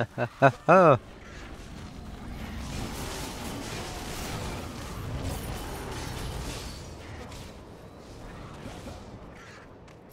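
Magic blasts crackle and burst in quick succession.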